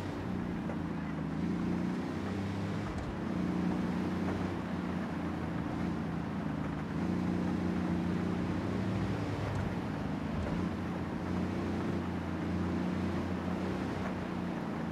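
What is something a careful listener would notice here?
Tyres hiss on a wet road.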